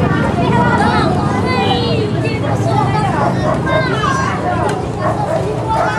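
Many young children chatter and shout excitedly nearby, outdoors.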